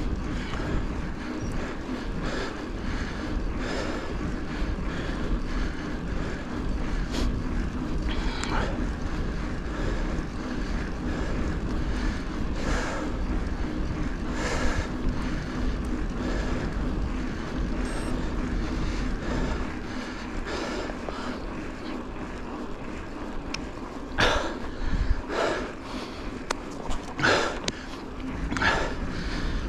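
Bicycle tyres hum steadily on smooth asphalt.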